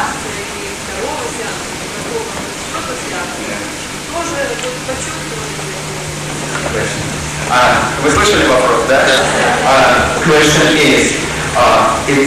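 An elderly woman speaks calmly into a microphone, heard through a loudspeaker.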